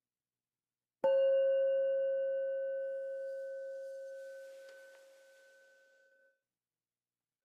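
A singing bowl is struck and rings out, slowly fading.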